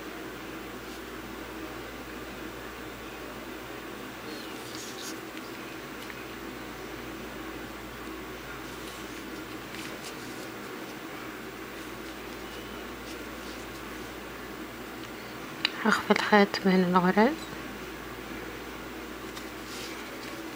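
Thread rustles softly as it is pulled through knitted fabric.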